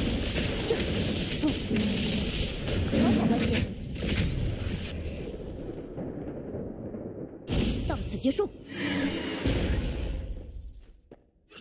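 Game combat effects crash and boom in dense, noisy bursts.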